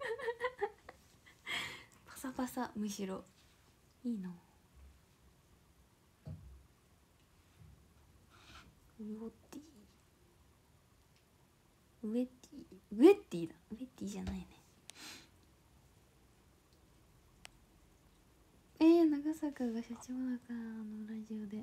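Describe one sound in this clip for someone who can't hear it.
A young woman speaks softly and tearfully, close to a microphone, with long pauses.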